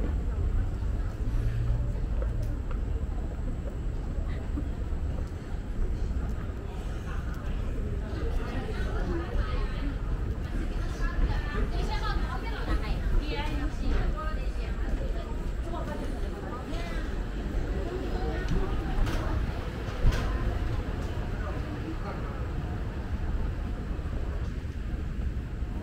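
A moving walkway hums and rumbles steadily.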